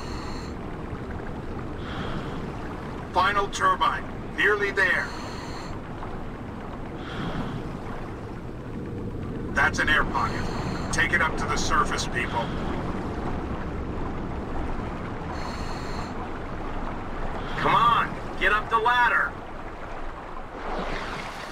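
Air bubbles gurgle steadily from a diver's breathing gear underwater.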